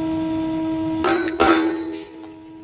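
Glass marbles crack and shatter under a hydraulic press.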